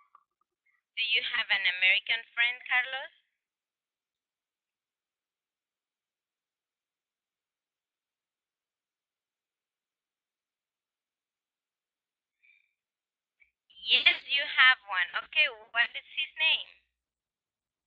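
A young woman speaks clearly into a microphone, heard through an online call.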